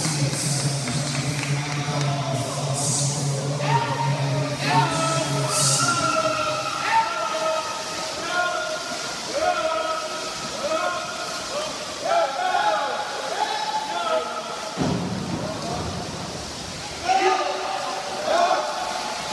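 Swimmers splash steadily through the water.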